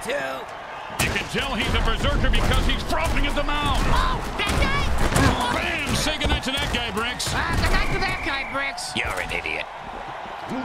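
Armoured players collide with heavy thuds.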